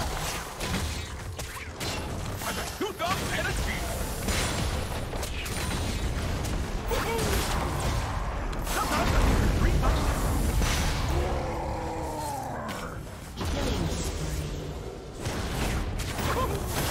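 Spell blasts and sword clashes crackle and boom in a busy video game fight.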